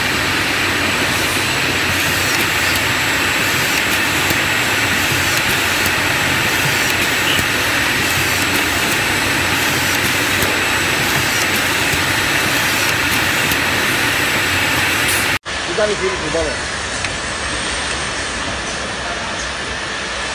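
An automatic screwdriving machine whirs as its head moves and drives screws.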